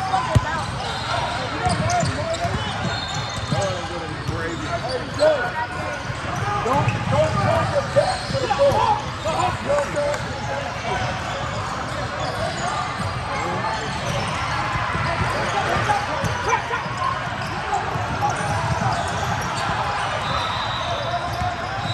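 Basketball sneakers squeak on a hardwood court in a large echoing hall.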